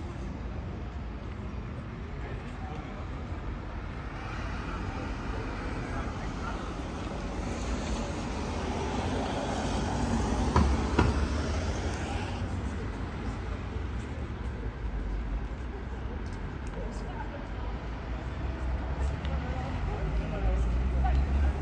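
Traffic hums along a street outdoors at night.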